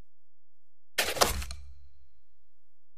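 A game's menu opens with a short whooshing sound effect.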